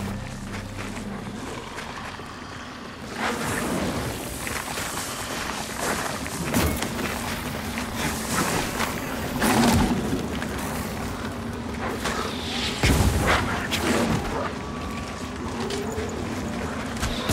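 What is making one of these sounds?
Footsteps crunch on gravel and rock.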